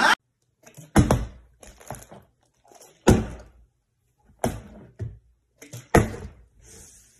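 Objects knock sharply on a wooden table.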